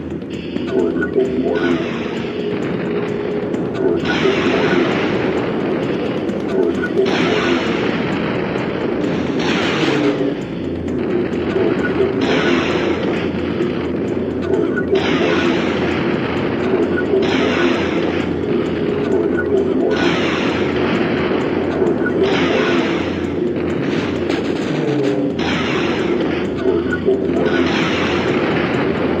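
Gunshots and explosions boom again and again.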